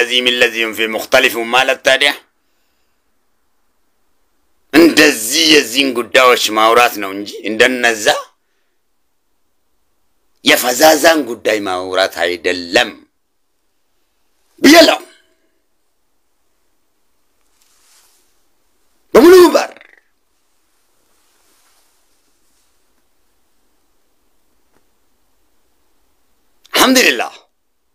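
A man speaks with animation close to a microphone, in short bursts with pauses.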